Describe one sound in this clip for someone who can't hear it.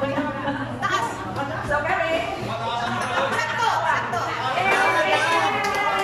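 Older women laugh and cheer loudly nearby.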